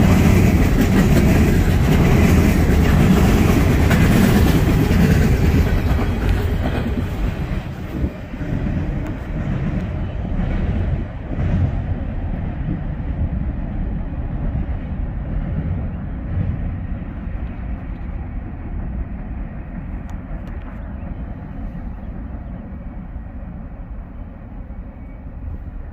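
A freight train rumbles and clatters past close by, then fades into the distance.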